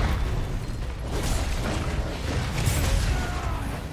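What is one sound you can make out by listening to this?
Sparks burst with a crackle from a weapon strike.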